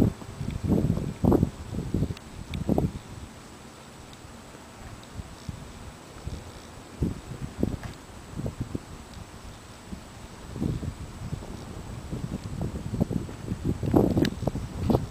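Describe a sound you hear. Gusts of wind rumble and buffet outdoors, coming and going.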